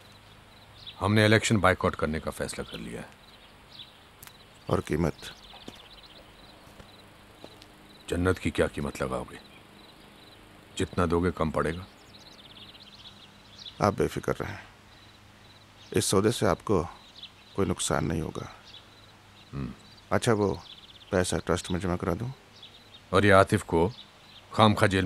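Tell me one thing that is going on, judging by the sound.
A man speaks calmly and slowly, close by, with long pauses.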